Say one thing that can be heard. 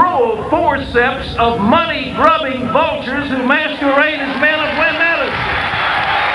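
A man speaks with feeling into a microphone, echoing through a stadium.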